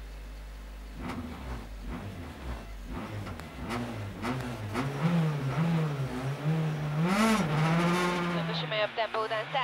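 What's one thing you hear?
A rally car engine idles roughly and revs up and down loudly.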